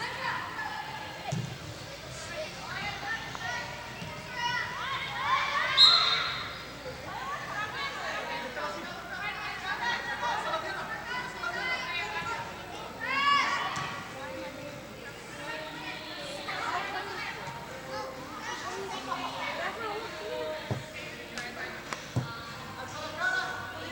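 Young women shout and call out across a large echoing indoor hall.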